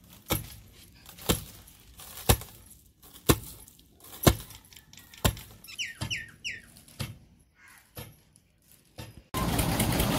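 A wooden pestle pounds grain in a stone mortar with regular heavy thuds.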